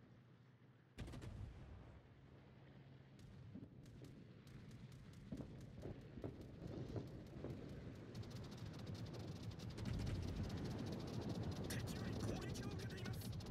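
Ship guns fire in heavy booming salvos.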